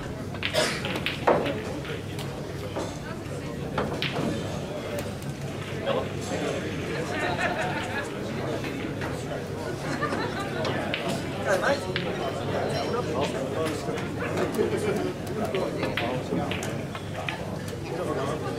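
Pool balls click together on a nearby table.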